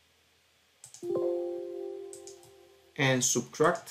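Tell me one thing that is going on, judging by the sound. A computer alert chimes once and rings out.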